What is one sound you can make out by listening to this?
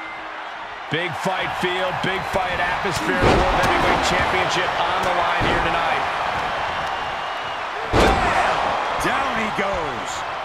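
Bodies slam and thud onto a wrestling ring.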